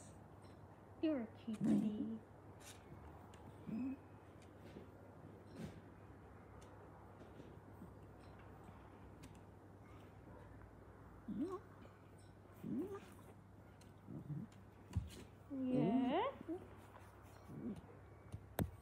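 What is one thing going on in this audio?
A dog whines softly close by.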